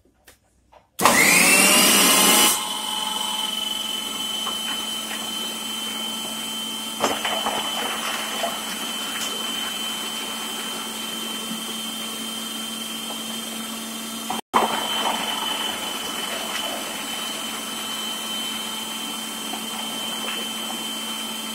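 A food processor motor whirs steadily at high speed.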